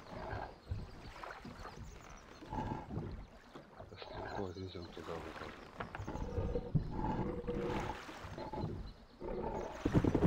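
A man talks calmly into a microphone, close up.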